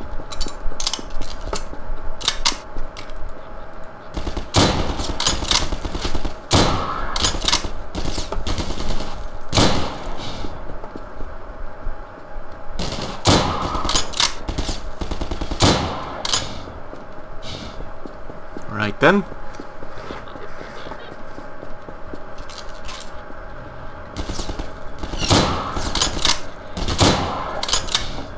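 Gunshots crack out in quick bursts.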